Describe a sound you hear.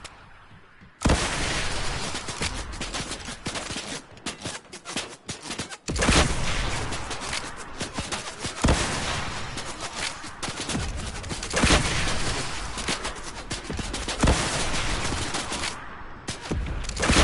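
Rockets explode with heavy booms.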